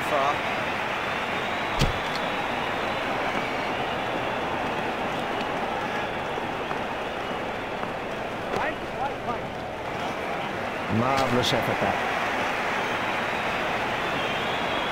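A large crowd murmurs and cheers steadily.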